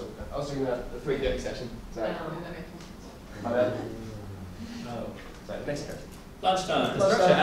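A young man speaks in a large echoing hall.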